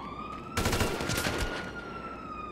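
A gun fires a rapid burst of loud shots.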